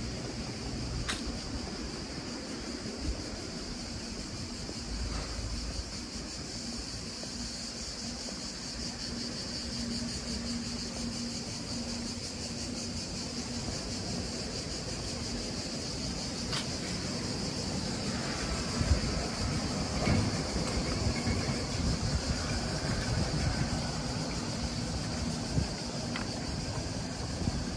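Wind blows across an open outdoor space.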